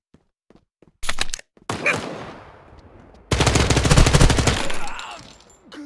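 Rapid gunfire rattles in loud bursts with echoing tails.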